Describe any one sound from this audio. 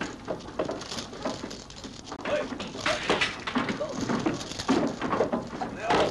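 Axes chop into wood with repeated knocks.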